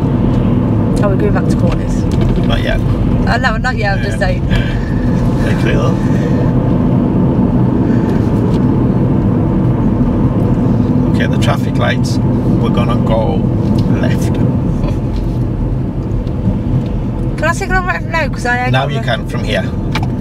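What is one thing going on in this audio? A middle-aged man speaks calmly from inside the car.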